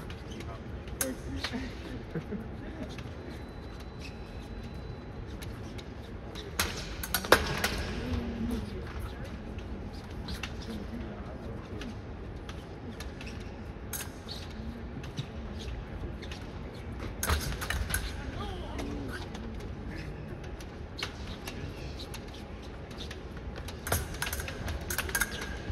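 Steel blades clash and click against each other.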